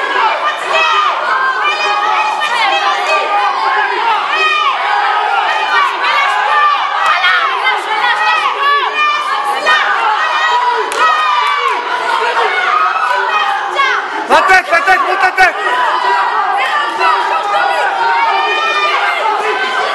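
A crowd of people shouts and cheers in a large echoing hall.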